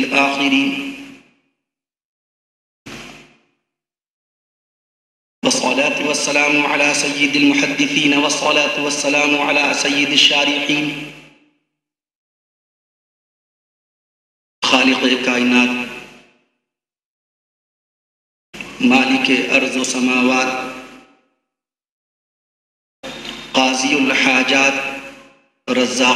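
A man speaks with feeling through a microphone, in short bursts with pauses.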